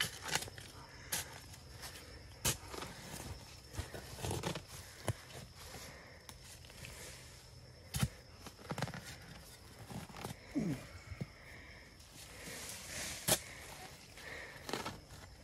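A metal digging bar thuds and scrapes into dry soil.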